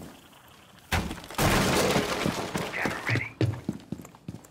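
A wooden barricade is smashed apart with loud cracks.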